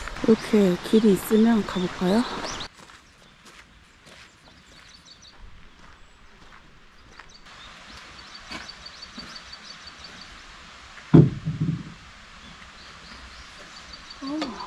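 A young woman talks cheerfully up close.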